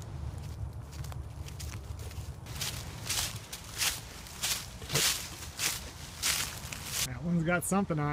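Footsteps swish through tall grass and crunch on dry leaves.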